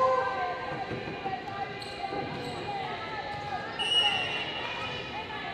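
Young women call out to one another across a large echoing gym.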